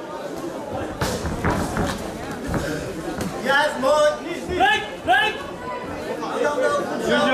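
Gloves thud as kickboxers trade punches and kicks.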